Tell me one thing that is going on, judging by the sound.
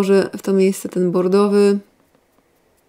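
A young woman speaks calmly and close to a microphone.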